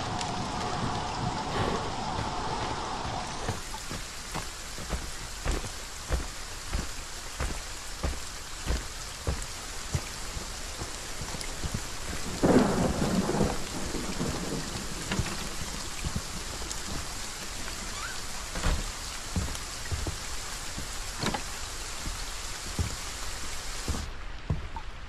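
Rain patters steadily all around.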